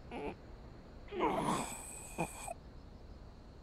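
An elderly man groans weakly.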